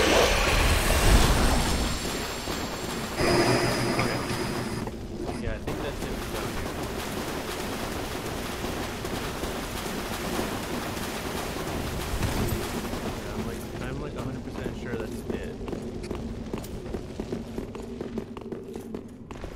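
Armoured footsteps run over stone.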